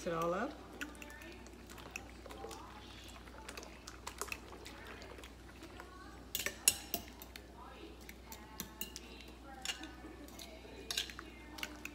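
A spoon clinks against a bowl while stirring.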